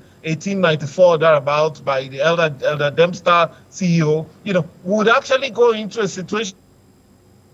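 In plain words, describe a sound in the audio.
A middle-aged man speaks with animation over an online call.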